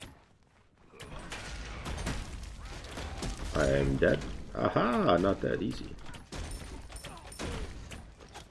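Game spell blasts and clashes crackle and boom.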